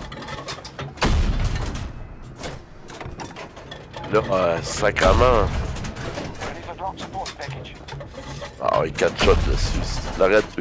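A tank cannon fires with deep, heavy booms.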